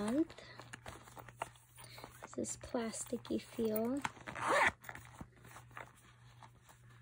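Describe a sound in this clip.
A plastic pouch rustles and crinkles as it is handled.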